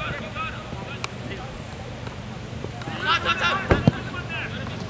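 A ball is kicked with a sharp thud.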